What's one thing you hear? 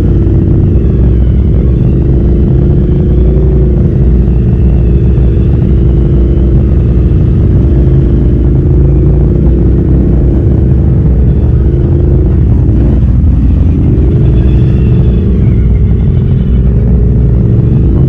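A quad bike engine drones loudly up close, rising and falling with the throttle.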